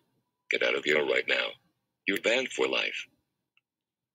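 A computer-generated man's voice speaks calmly and up close.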